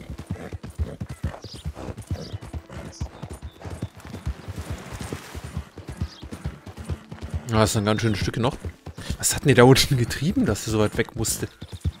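A horse's hooves thud steadily at a trot on a dirt trail.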